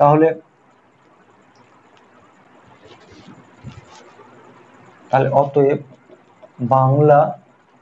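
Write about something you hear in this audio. A young man speaks clearly and calmly, close by, in short bursts.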